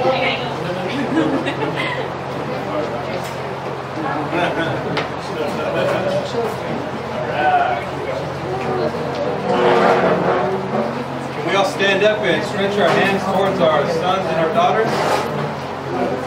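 A group of men and women sing together in a room.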